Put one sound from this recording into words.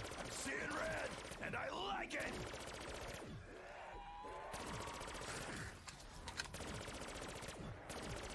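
An energy weapon fires in crackling, buzzing blasts.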